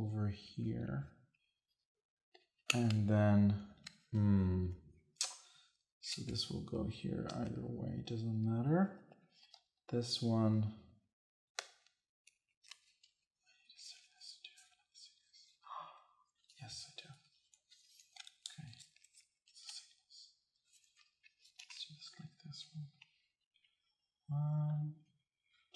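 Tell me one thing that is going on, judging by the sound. Game cards and pieces click and slide on a table.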